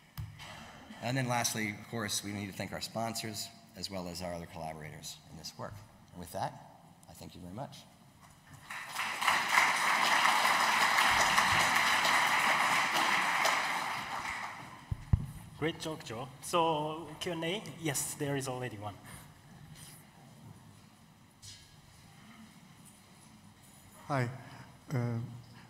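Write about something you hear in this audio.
A man speaks calmly into a microphone, his voice carrying through a large hall.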